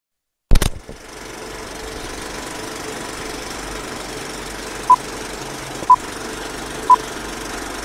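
Old film crackles and hisses steadily.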